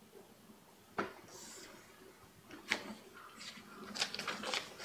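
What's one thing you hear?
Paper rustles and crinkles as a print is handled close by.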